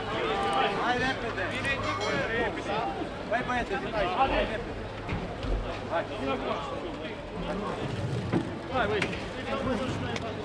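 A crowd of men and women talk and call out nearby, outdoors.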